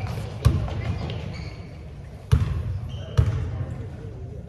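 A basketball bounces loudly in a large echoing gym.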